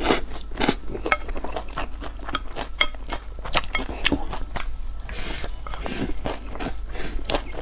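A young woman chews and slurps food noisily close to a microphone.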